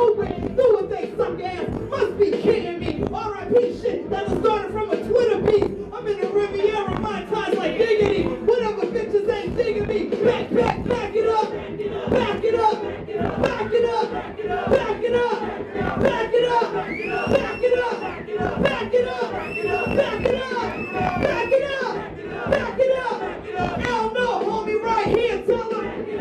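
A young woman raps energetically into a microphone, heard through loudspeakers.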